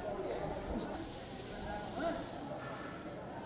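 Plastic bags rustle as they are handed over.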